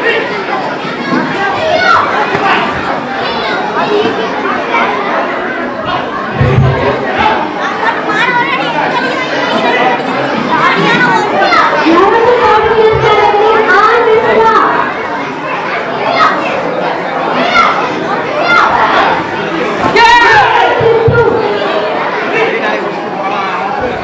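A crowd of spectators talks and shouts in an echoing hall.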